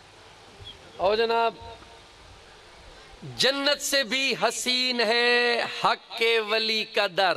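A man sings and recites with feeling through a microphone and loudspeaker.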